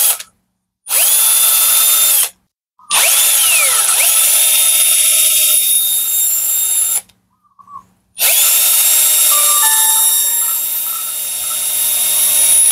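A cordless drill whirs in short bursts, spinning up and winding down.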